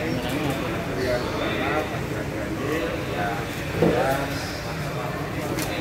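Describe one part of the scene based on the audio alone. Several men talk at once nearby in a crowd.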